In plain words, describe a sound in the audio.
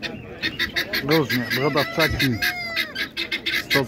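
A rooster crows nearby.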